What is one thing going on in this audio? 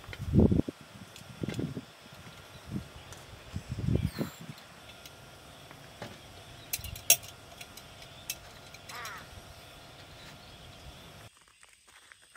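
Plastic lantern parts click and knock as they are handled.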